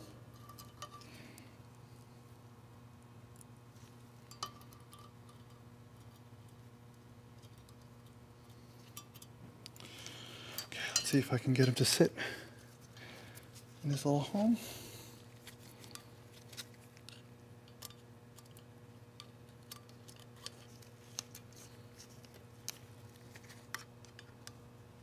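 Small metal tools click and tap against metal parts.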